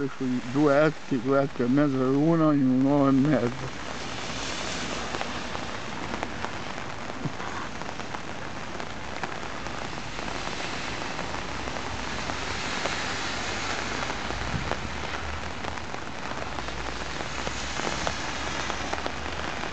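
A swollen river flows with a steady rush.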